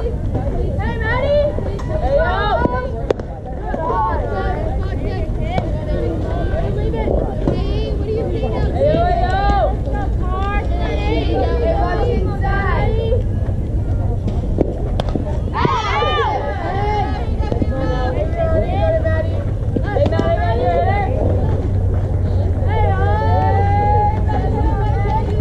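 Young women on a field shout and cheer with animation.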